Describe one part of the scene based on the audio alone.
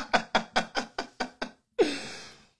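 A young man laughs loudly in short bursts close to a microphone.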